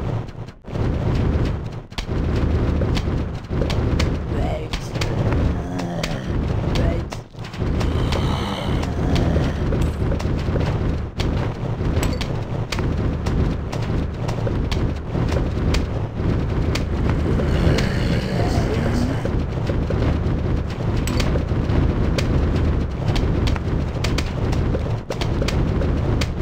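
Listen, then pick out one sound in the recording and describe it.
Peas pop and thud against zombies in quick, steady bursts.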